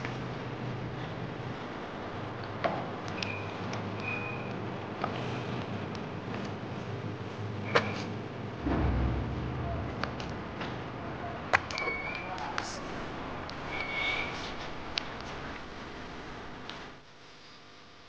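Water splashes and drips as a man washes his face with his hands.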